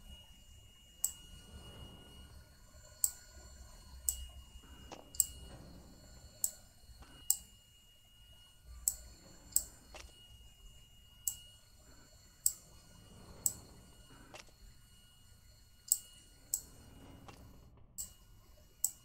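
Puzzle pieces click sharply as they turn into place.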